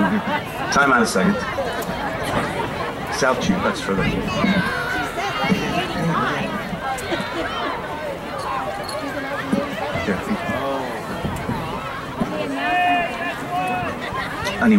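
A crowd of children and adults chatter outdoors.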